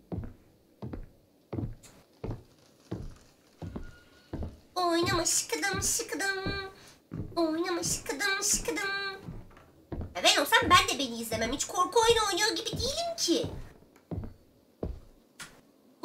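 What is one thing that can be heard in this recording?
Slow footsteps thud on a wooden floor.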